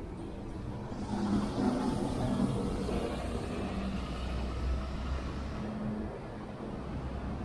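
A bus engine rumbles as the bus drives past close by.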